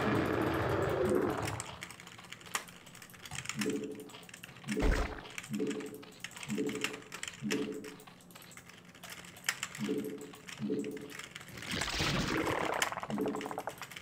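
Game sound effects click and chirp rapidly.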